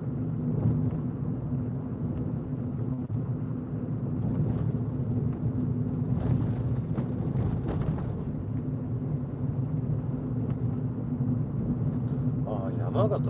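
Tyres roll and rumble on a paved road.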